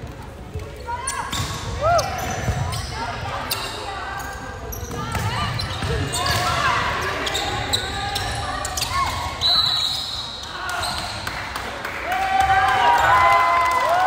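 A volleyball is struck with sharp slaps during a rally in a large echoing gym.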